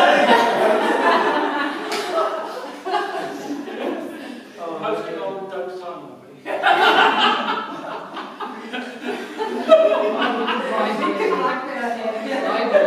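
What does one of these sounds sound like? A mixed choir of men and women sings together in a large echoing hall.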